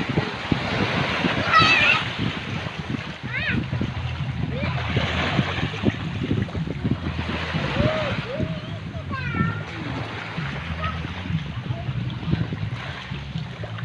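Small waves wash onto a sandy shore.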